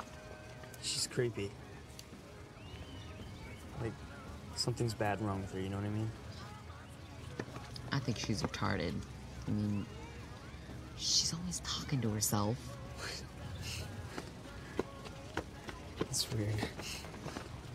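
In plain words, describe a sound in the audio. A teenage boy speaks quietly and calmly nearby.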